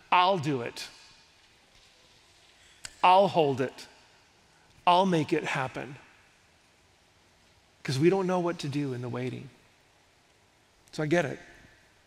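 A middle-aged man speaks with feeling through a headset microphone, in short phrases with pauses.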